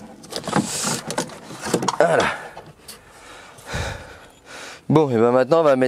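Plastic clips snap and metal parts rattle as a car door panel is worked loose.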